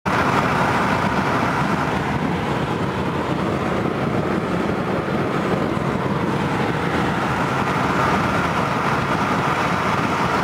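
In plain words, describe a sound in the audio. A car cruises at highway speed, with road and tyre noise heard from inside the car.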